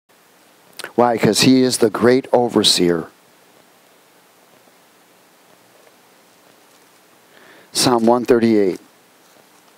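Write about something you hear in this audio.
A man reads aloud calmly through a microphone.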